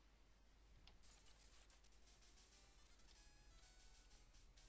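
Bleepy electronic game music plays with quick chiptune notes.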